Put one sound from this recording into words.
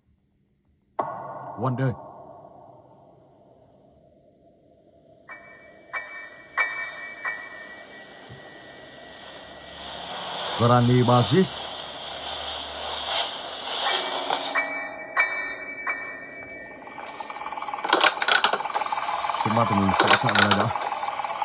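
Electronic game music plays through a small speaker.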